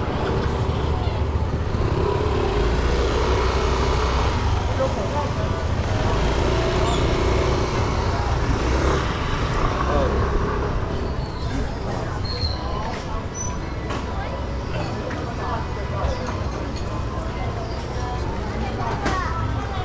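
A crowd murmurs outdoors on a busy street.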